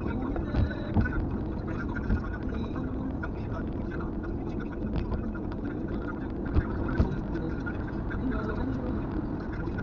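Tyres and wind roar from inside a car at highway speed.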